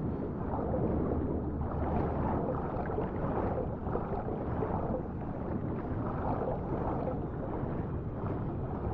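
Water churns and bubbles in a muffled underwater rush.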